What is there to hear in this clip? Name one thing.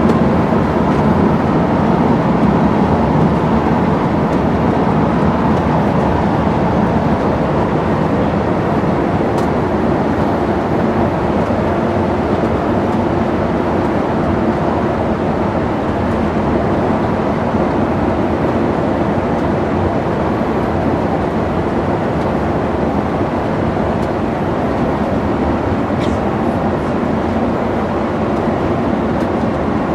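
A bus engine rumbles steadily as the bus drives along a road.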